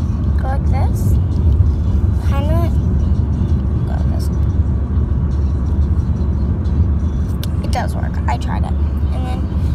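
A young girl talks playfully close to a phone's microphone.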